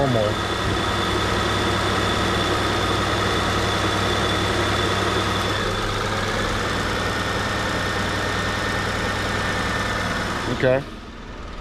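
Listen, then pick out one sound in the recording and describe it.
A car engine idles with a steady hum close by.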